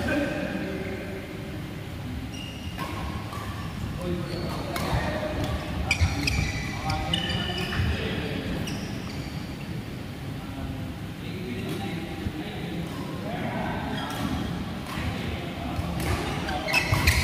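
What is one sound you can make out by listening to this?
Shuttlecocks are struck with rackets, giving sharp pops.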